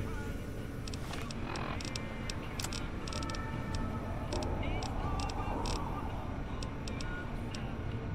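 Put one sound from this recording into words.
A device clicks softly as a menu is scrolled through.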